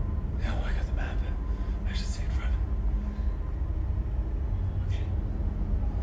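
A man speaks in a low, tense voice close by.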